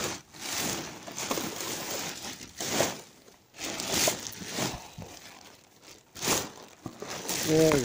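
Plastic bags rustle and crinkle up close.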